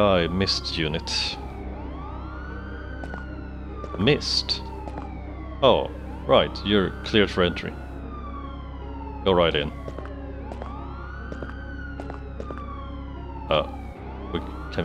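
A siren wails steadily in the distance, rising and falling.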